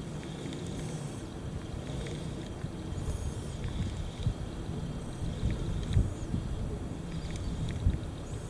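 A fishing reel clicks as it turns.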